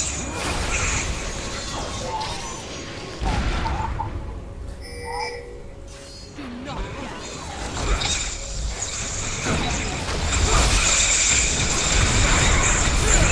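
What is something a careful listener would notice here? Spell effects whoosh and crackle in a game battle.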